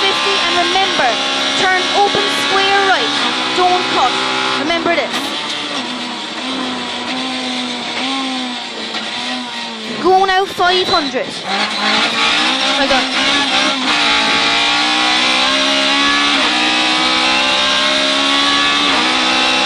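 A rally car engine roars loudly, revving up and down with gear changes.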